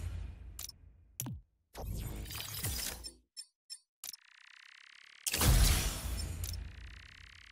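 Short game menu clicks and whooshes sound as selections change.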